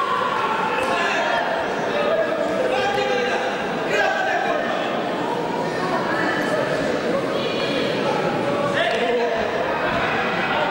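A crowd of spectators talks and calls out in a large echoing hall.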